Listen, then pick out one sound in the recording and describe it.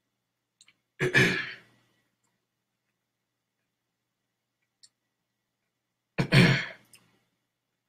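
A man coughs loudly, close by.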